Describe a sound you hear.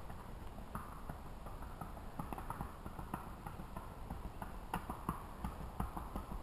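A horse's hooves clop steadily on a paved road, coming closer.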